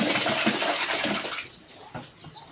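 Feed pours and rattles into a stone trough.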